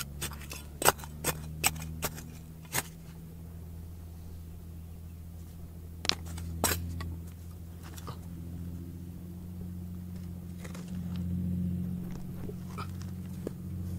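Loose dirt and pebbles trickle and patter down.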